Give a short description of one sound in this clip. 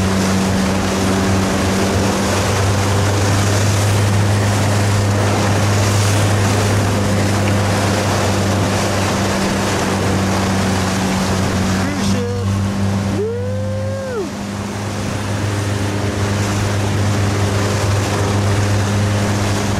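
Choppy waves slap and splash.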